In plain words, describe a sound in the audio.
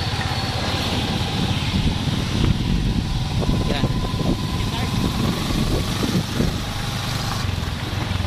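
A motorbike engine rumbles past close by.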